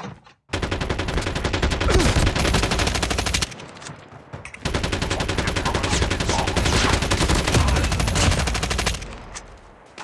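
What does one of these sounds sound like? A machine gun fires in rapid automatic bursts.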